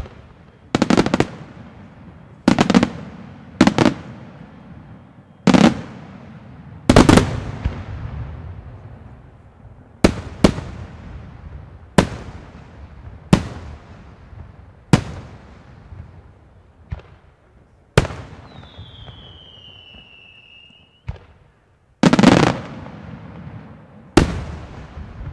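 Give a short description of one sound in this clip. Fireworks crackle and fizzle after bursting.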